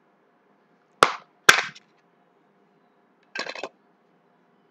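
Plastic phone parts click and knock together.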